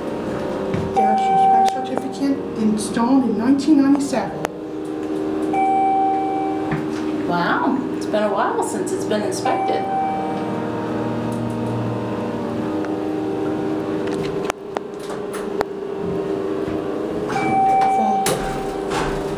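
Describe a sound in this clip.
An elevator chime beeps briefly several times.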